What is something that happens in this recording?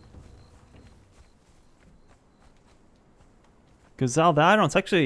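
Footsteps pad softly on sand and grass.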